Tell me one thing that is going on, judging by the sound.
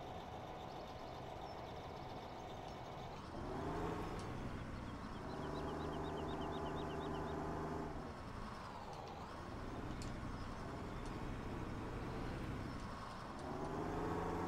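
A heavy diesel engine rumbles and revs up and down.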